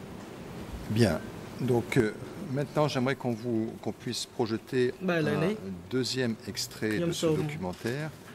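A middle-aged woman speaks steadily into a microphone.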